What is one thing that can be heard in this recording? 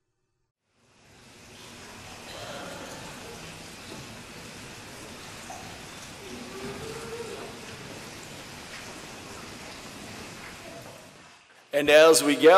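A congregation murmurs and shuffles softly.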